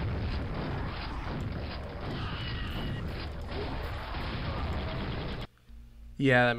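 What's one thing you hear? Gunfire and explosions boom in a game.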